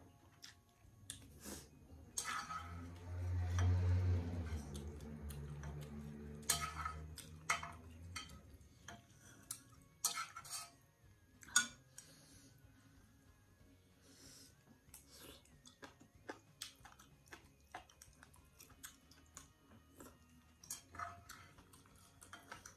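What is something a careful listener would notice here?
A young woman slurps noodles and soup up close.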